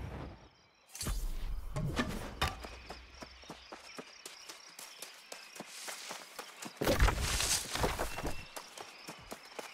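Footsteps tread through grass.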